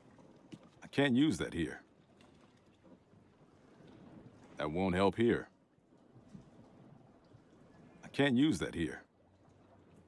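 A man says short lines calmly.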